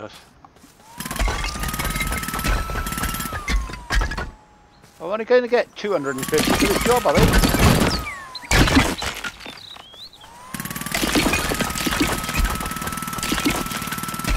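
A jackhammer pounds rapidly against brick.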